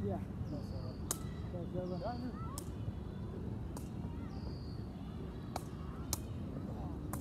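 A foot kicks a ball with a dull thump.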